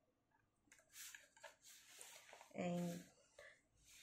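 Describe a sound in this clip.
A plastic ruler slides across paper.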